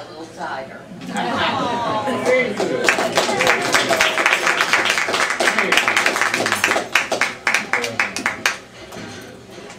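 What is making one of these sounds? A group of people laughs and applauds.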